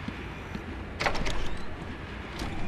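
A heavy metal door clanks open.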